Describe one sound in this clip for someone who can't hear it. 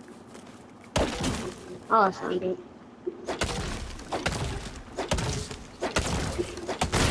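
An axe chops into a tree trunk with hard, quick thuds.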